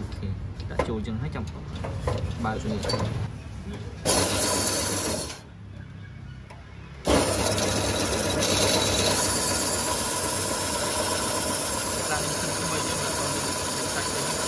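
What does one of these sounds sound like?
A machine's metal rollers whir steadily.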